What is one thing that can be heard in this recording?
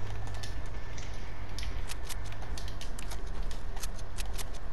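Game footsteps patter quickly on grass.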